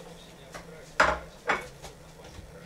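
Plates clatter on a table.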